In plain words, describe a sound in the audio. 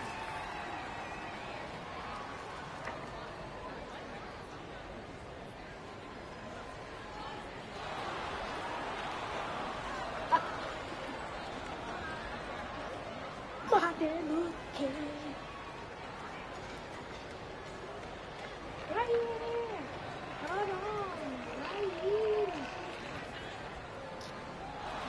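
A crowd murmurs steadily in a large arena.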